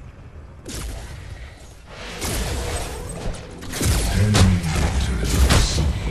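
Magic blasts and impacts crash in a fight.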